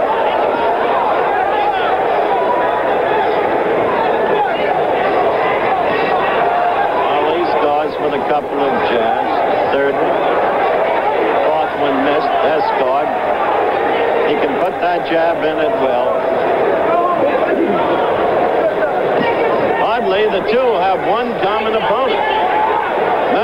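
A large crowd cheers and shouts throughout in a big arena.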